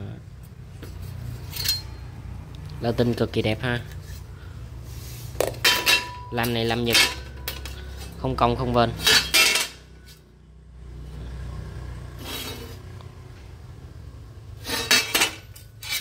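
Metal chainsaw bars clink and scrape against one another.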